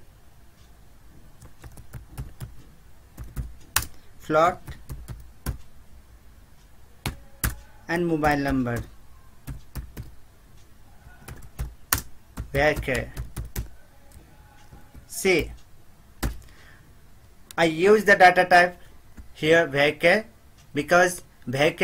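Keys clack on a keyboard in short bursts.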